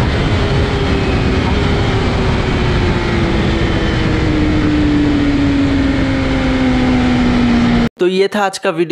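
A motorcycle engine winds down steadily as the bike slows.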